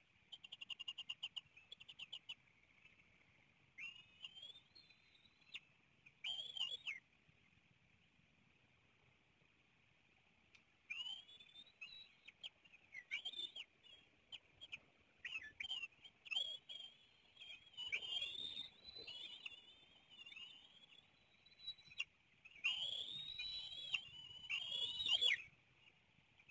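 Young eagles give high, squealing chirps in bursts, close by.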